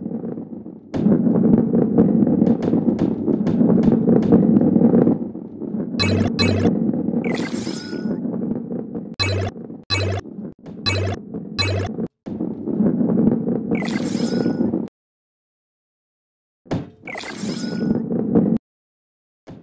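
A ball rolls along a wooden track with a low rumble.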